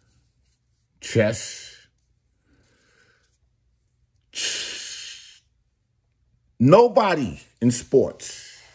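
A middle-aged man speaks with animation, close to the microphone.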